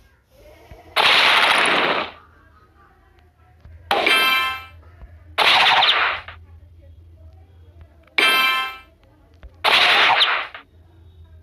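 Puzzle game blocks burst with short, bright whooshing chimes, again and again.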